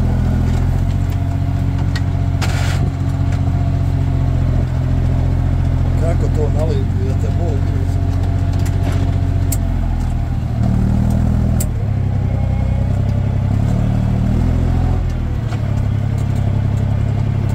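A plough scrapes and tears through soil.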